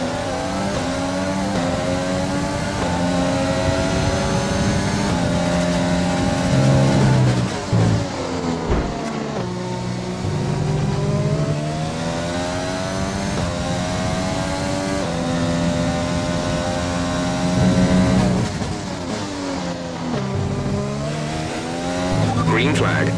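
A racing car engine screams at high revs, rising through the gears and dropping sharply when braking for corners.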